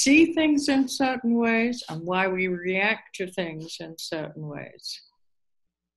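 An elderly woman speaks calmly and close through a computer microphone.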